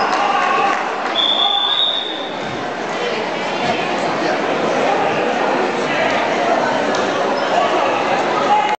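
A crowd of children and adults chatters in a large echoing hall.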